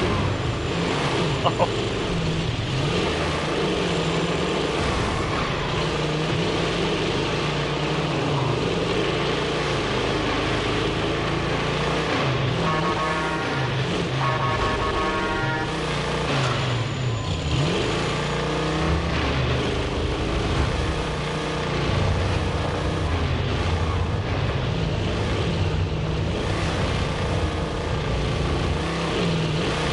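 A heavy truck engine rumbles and revs as it drives along.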